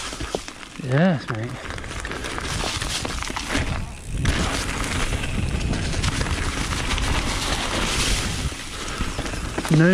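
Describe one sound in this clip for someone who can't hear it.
Bike tyres crunch and rattle over dry leaves and dirt.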